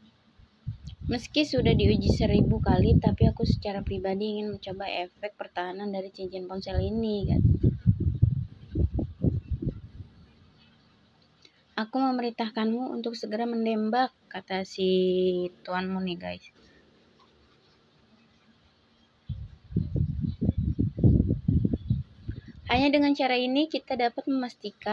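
A woman reads out with animation, close to the microphone.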